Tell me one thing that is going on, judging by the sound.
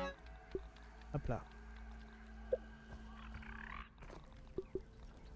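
Short soft interface blips sound now and then.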